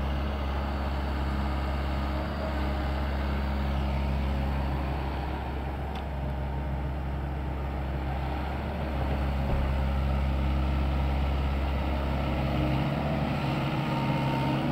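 The steel tracks of a compact crawler excavator clank and squeak over soft soil.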